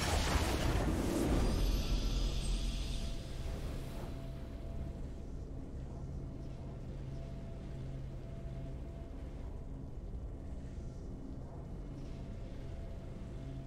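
Soft steady music hums in the background.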